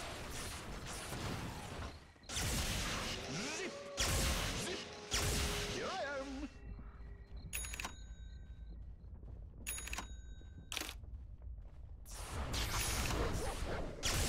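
Spell effects whoosh and crackle in a video game.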